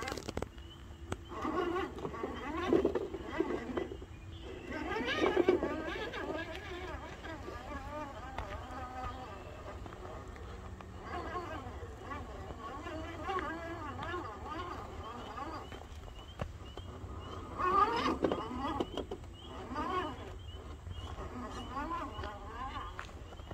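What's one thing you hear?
A small electric motor whirs as a toy truck crawls over rocks.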